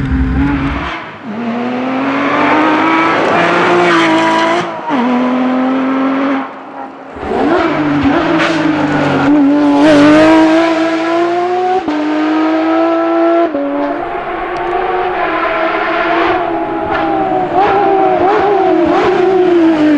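A rally car engine roars loudly as the car races past on the road.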